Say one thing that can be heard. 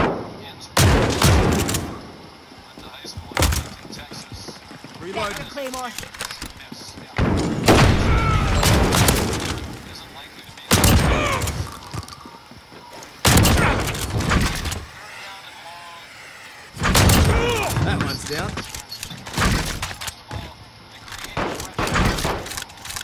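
A rifle fires loud bursts of gunshots.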